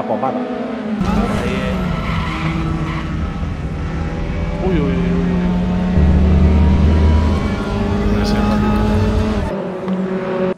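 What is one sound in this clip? A racing car engine roars loudly up close, revving up and down through gear changes.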